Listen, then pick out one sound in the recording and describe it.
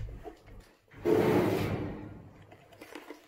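A metal locker door rattles and clanks as it is handled.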